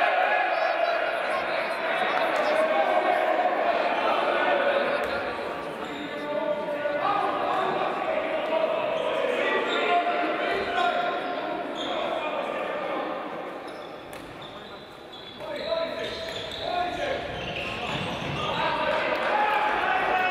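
A ball thuds on a wooden floor.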